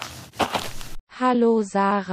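A young woman speaks with a cheerful greeting.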